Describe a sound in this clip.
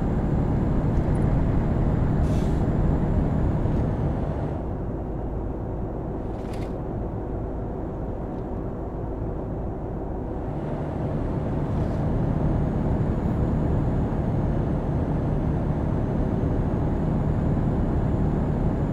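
Tyres roll along a road with a steady rumble.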